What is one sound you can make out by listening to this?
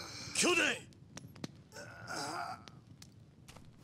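A man speaks in a strained voice, close up.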